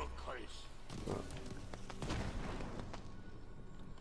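Fiery arrows whoosh down and burst with a crackle.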